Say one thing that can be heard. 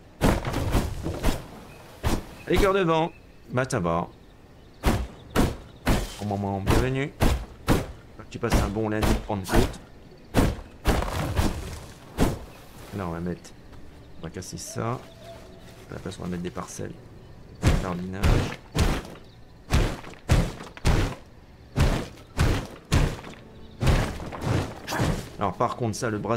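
A young man talks with animation into a microphone.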